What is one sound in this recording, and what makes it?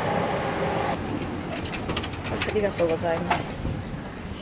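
A glass door is pushed open and swings shut.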